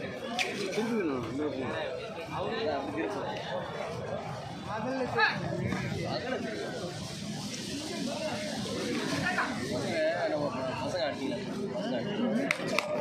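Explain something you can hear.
A crowd of spectators chatters and shouts outdoors.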